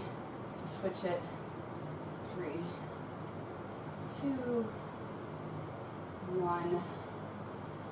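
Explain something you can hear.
A young woman speaks calmly nearby, in short phrases with pauses.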